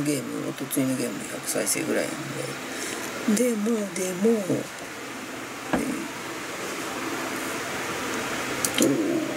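A middle-aged woman talks calmly into a nearby microphone.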